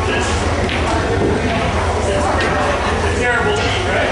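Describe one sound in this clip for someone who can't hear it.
A cue strikes a billiard ball with a sharp tap.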